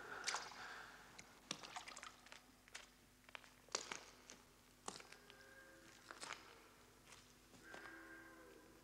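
Footsteps climb a set of outdoor steps.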